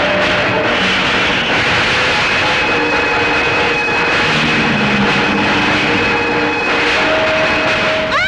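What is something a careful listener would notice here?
A man screams in agony.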